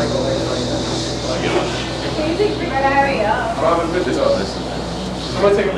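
A drummer keeps a beat on a drum kit.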